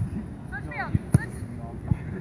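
A player kicks a soccer ball.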